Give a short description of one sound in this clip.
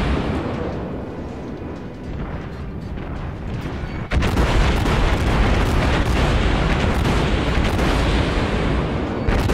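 Shells explode in the water with deep rumbling blasts.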